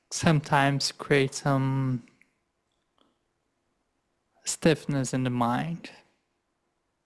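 A man speaks calmly into a microphone over an online call.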